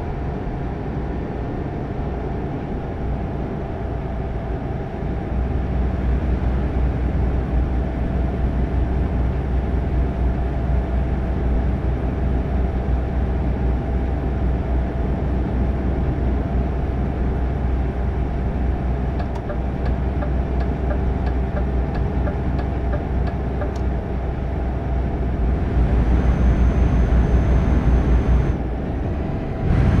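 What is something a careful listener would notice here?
Tyres roll on the road with a constant rumble.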